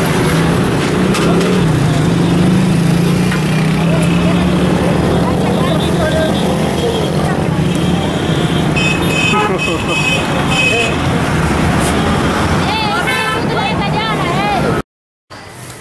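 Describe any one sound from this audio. A busy outdoor street bustles loudly with traffic and crowd noise.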